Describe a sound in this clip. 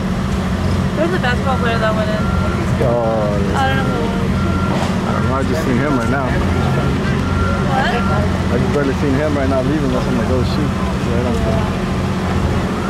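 Several men and women talk casually at a distance outdoors.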